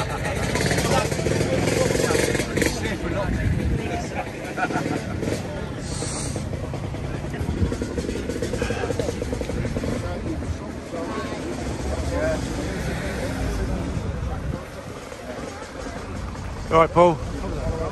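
Men and women chat together outdoors at a crowded gathering.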